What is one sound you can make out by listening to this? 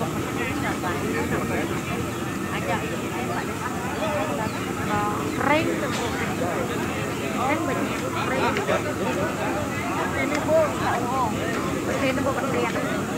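A crowd of men and women chatter loudly all around, outdoors.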